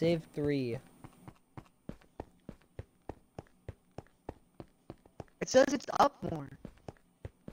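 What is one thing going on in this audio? Footsteps tap steadily on a hard stone floor.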